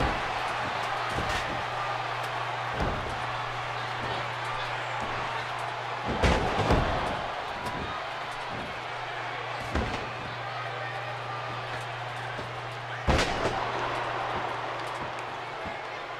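A crowd cheers steadily in a large echoing arena.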